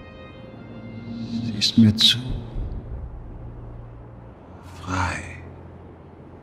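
A man speaks quietly and intensely close by.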